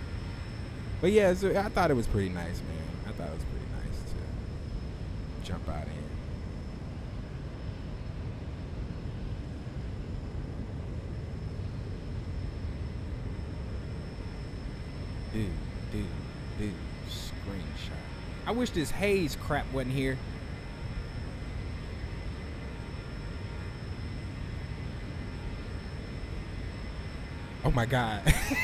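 A young man talks into a microphone with animation, in short bursts.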